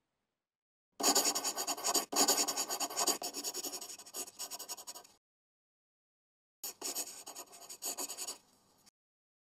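A marker squeaks and scratches on a board.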